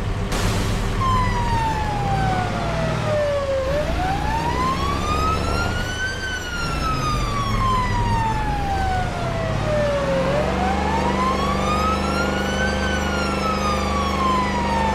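A police siren wails, slowly rising and falling.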